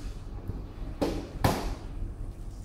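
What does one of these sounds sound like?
A lid thumps shut on a plastic box.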